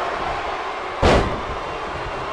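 A wrestler slams onto the mat with a heavy thud.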